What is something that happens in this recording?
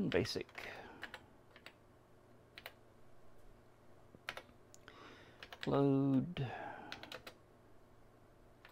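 Keyboard keys click sharply as someone types.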